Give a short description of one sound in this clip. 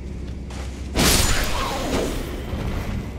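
A heavy blow strikes with a loud crash.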